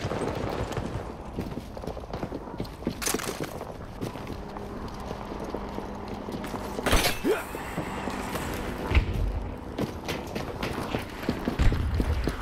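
Footsteps clang on metal stairs.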